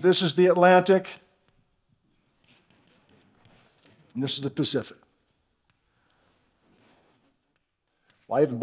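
Chalk scratches on a board.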